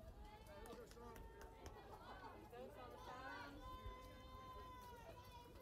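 Young women shout and cheer from across an outdoor field.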